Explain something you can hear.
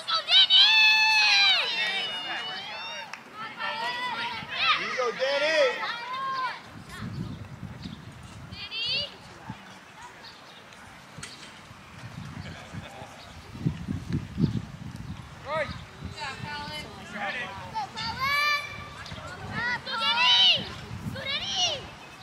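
Children shout and cheer across an open field.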